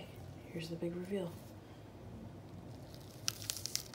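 An avocado is pulled apart with a soft, wet squelch.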